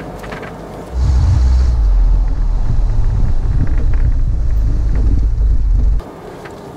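Wind rumbles loudly against a microphone outside a moving car.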